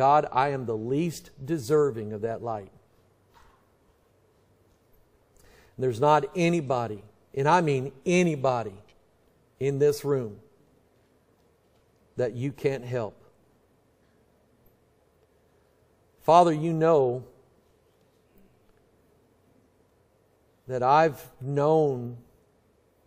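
A middle-aged man speaks slowly into a microphone, with long pauses.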